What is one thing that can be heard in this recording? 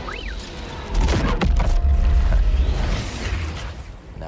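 An energy blast crackles and booms with a deep rumble.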